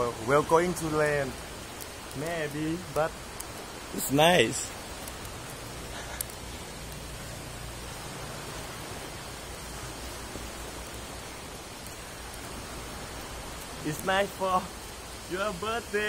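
Sea waves wash gently onto a shore.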